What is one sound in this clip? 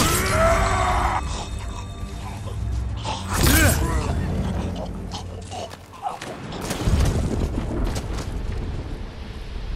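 Swords clash and ring sharply in a fight.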